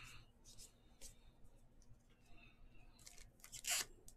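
A stack of cards is set down on a table with a soft tap.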